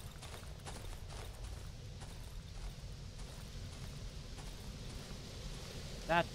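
Footsteps crunch softly on dry ground.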